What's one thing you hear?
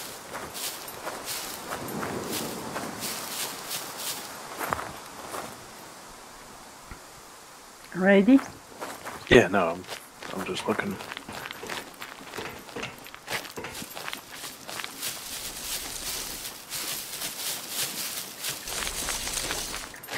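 Footsteps crunch steadily through dry grass and gravel.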